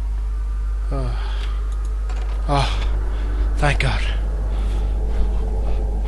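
A young man exclaims loudly into a close microphone.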